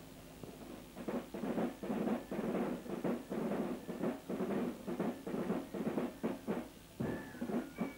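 Drums beat in a steady marching rhythm.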